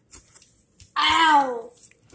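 A young child exclaims briefly.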